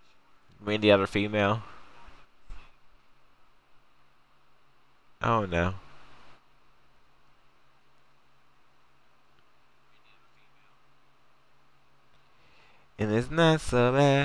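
A young man speaks into a microphone in short bursts.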